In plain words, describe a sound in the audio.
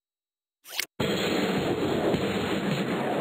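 A rocket roars loudly as it launches.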